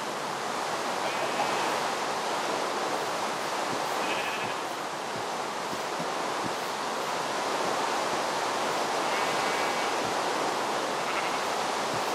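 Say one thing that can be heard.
Sheep bleat now and then.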